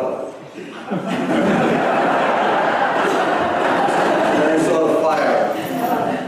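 A crowd laughs loudly.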